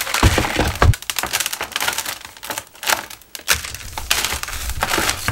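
Fingers scrape and press loose soil.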